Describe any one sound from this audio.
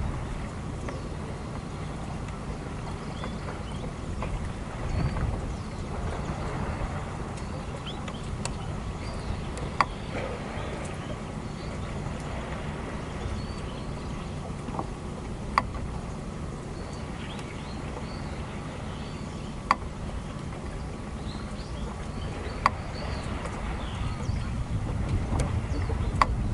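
Water laps gently against a pier.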